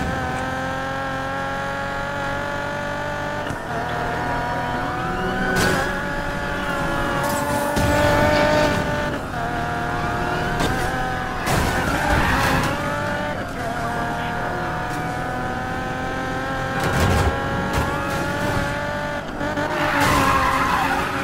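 A sports car engine roars at high revs, shifting gears as it speeds up.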